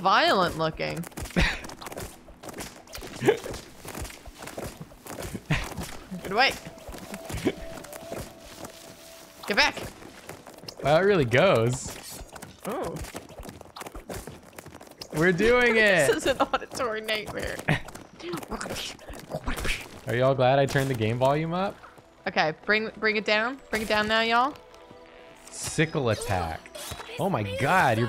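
A woman talks and laughs through a microphone.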